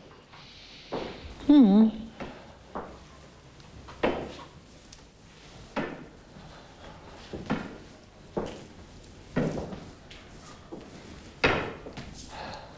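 Footsteps walk slowly across a hard floor.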